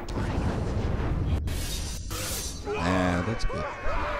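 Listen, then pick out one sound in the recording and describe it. A blade strikes with a heavy thud.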